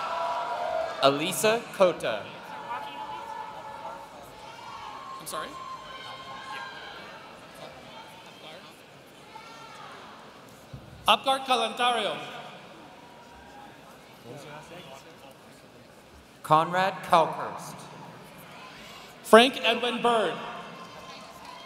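A man speaks in short bursts in a large echoing hall.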